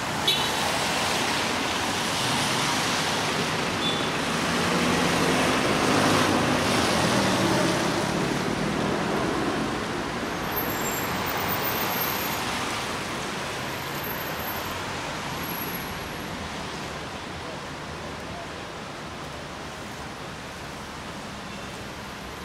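Car tyres hiss past on a wet road, swelling and then slowly fading.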